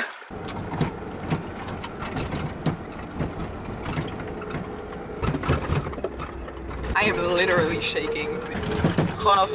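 A car rumbles and rattles along a bumpy gravel road.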